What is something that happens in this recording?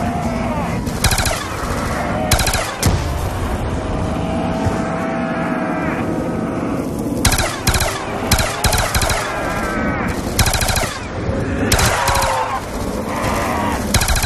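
A machine gun fires in short, loud bursts.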